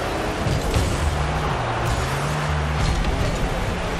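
A ball thuds as a car hits it.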